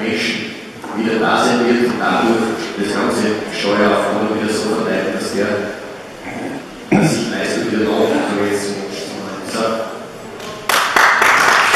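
A man speaks through a microphone over loudspeakers in a large echoing hall.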